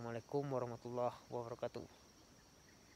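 A young man speaks calmly close to the microphone.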